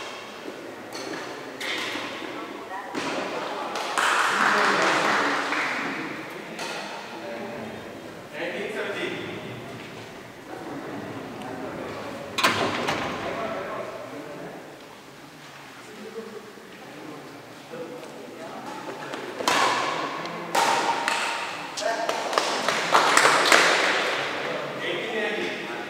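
Badminton rackets hit a shuttlecock with sharp pops in a large echoing hall.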